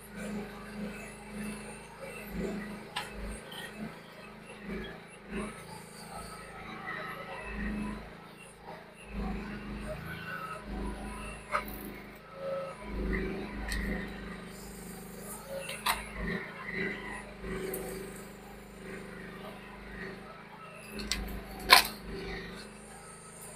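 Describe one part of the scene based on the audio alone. A small excavator's engine runs steadily close by.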